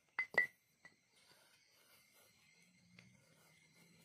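A hammer strikes metal with sharp ringing clinks.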